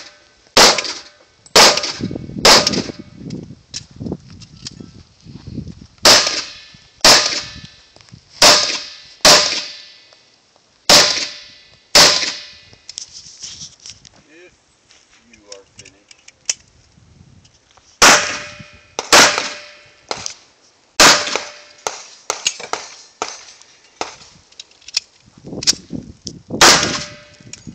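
A pistol fires loud shots one after another outdoors, each shot echoing off the hills.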